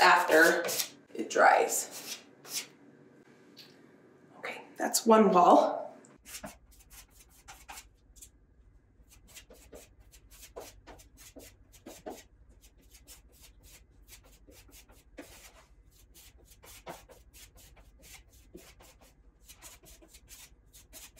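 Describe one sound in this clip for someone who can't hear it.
A hand tool scrapes and taps against a wall.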